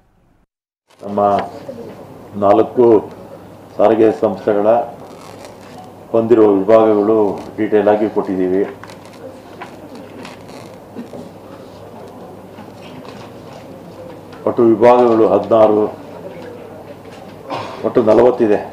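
An elderly man reads out a statement into a microphone.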